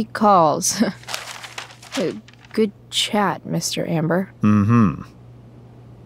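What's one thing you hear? A young woman speaks casually, close by.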